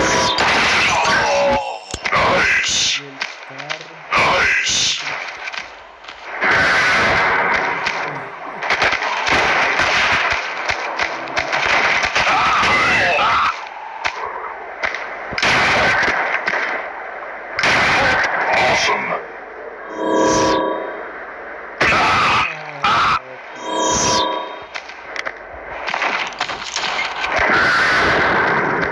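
Gunshots fire in bursts.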